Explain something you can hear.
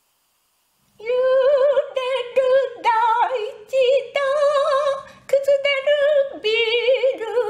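An elderly woman sings with a wide vibrato.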